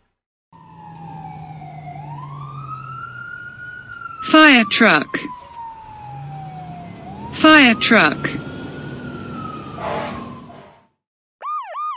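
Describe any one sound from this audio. A fire truck siren wails, rising and falling slowly.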